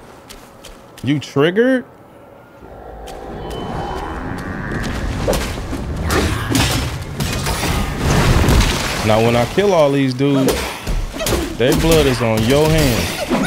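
A man talks with animation into a microphone close by.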